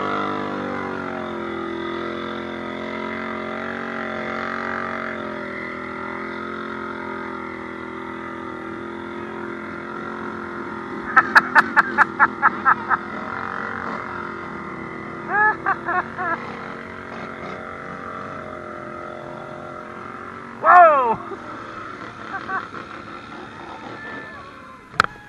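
Quad bikes splash through muddy water.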